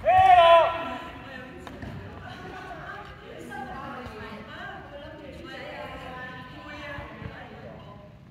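Adults talk and call out in the distance, echoing around the hall.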